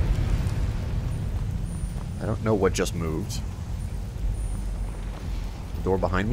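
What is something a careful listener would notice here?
A magical flame crackles and hums softly.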